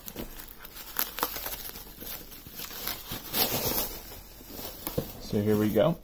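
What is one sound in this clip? Plastic bubble wrap crinkles and rustles.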